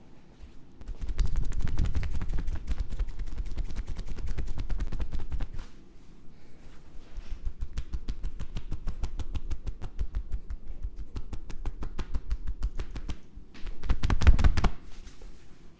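Hands rapidly chop and tap on a person's back and neck.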